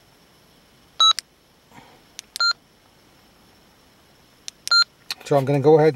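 A handheld radio gives short electronic beeps as its buttons are pressed.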